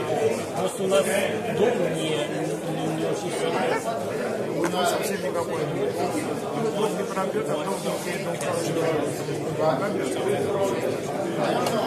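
Game pieces click against a board as they are moved.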